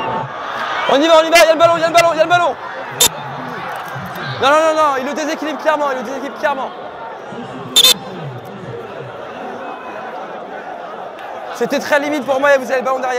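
A crowd of young men shouts loudly nearby outdoors.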